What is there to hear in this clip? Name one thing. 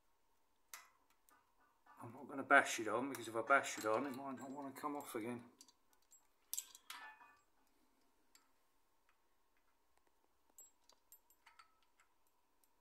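A metal chain rattles softly.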